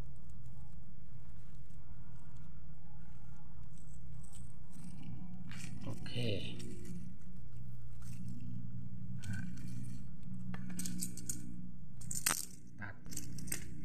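A string rustles as it is wound and tied around a stalk.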